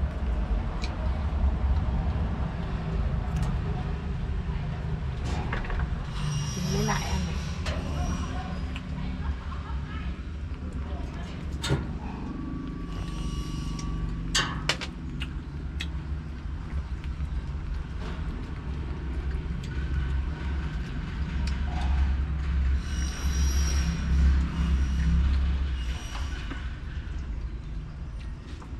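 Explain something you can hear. A chain-link fence rattles and clinks as a small monkey climbs on it.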